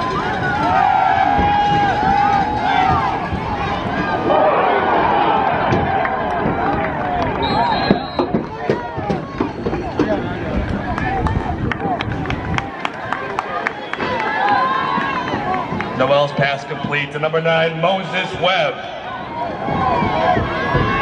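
A large outdoor crowd cheers and chatters throughout.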